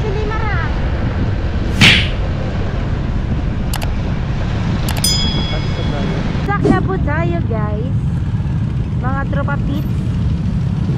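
Engines of small scooters hum as a group of them cruises along a road.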